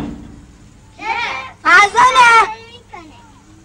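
A young boy calls out loudly close by.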